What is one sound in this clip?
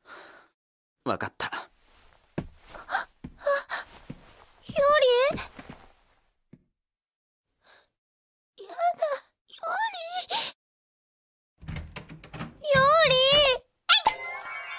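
A young woman speaks softly and tearfully, close by.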